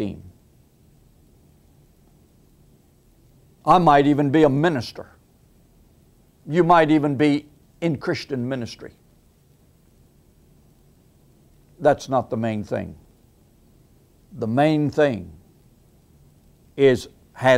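An elderly man speaks calmly and deliberately into a close microphone, with long pauses.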